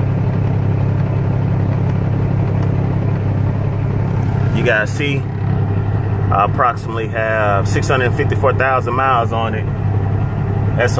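A diesel truck engine idles with a steady low rumble.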